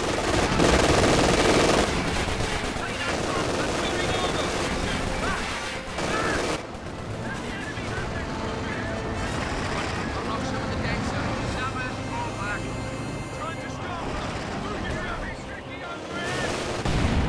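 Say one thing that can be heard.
Gunfire crackles in short bursts.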